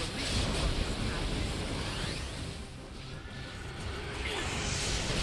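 Heavy hits thud and boom.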